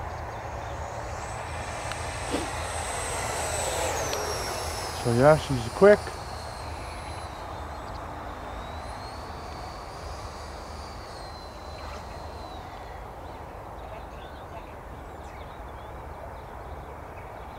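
A small aircraft drones faintly high overhead.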